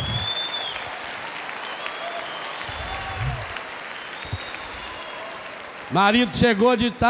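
A crowd claps and laughs in a large echoing space.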